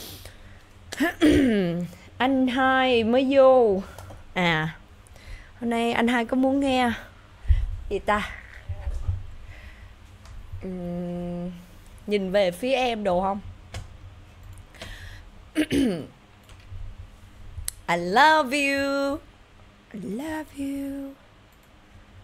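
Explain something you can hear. A young woman sings softly into a close microphone.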